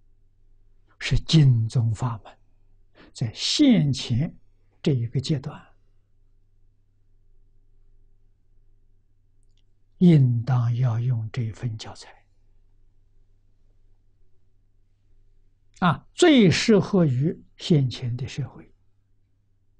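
An elderly man speaks slowly and calmly into a close microphone, with long pauses.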